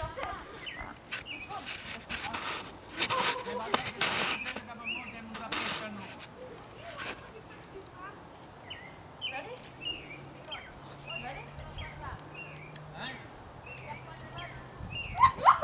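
A horse's hooves thud on soft sand at a distance.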